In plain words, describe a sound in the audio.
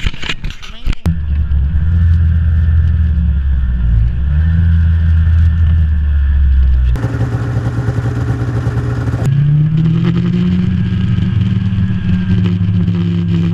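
A snowmobile engine drones at speed while riding over snow.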